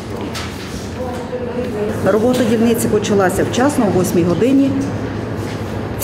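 A woman speaks calmly into a microphone close by.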